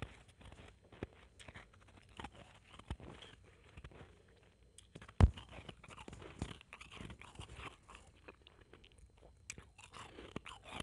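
A young woman whispers softly and close into a microphone.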